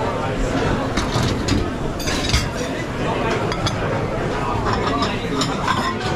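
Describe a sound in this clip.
Ceramic plates clatter and clink against each other.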